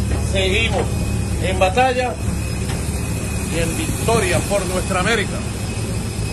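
A man speaks close by, loudly and with animation.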